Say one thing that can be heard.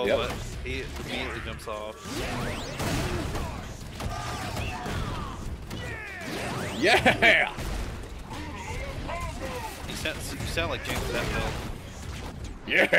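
Electronic whooshes and blasts of fighting effects sweep through.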